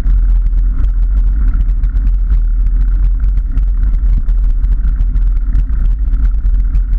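Bicycle tyres rattle and crunch over a rough path.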